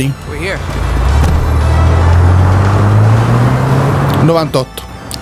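A car engine hums as a car drives off.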